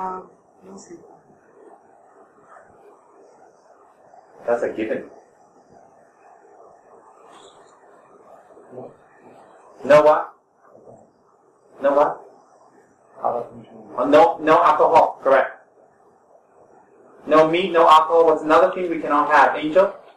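A young man speaks calmly and slowly, with pauses, close to a microphone.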